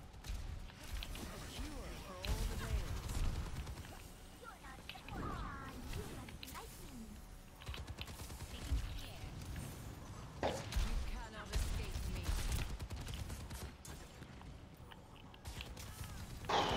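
Energy weapons fire in short bursts and blasts.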